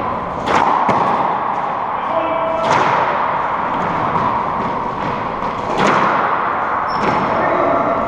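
A ball smacks off rackets and walls with sharp, echoing cracks.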